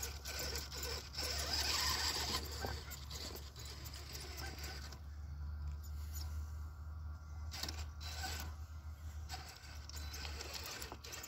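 Plastic tyres scrape and knock against loose stones.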